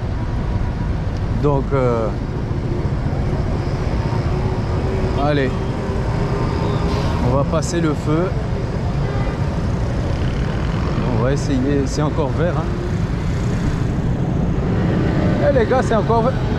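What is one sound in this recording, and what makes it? Traffic rumbles steadily on a busy street outdoors.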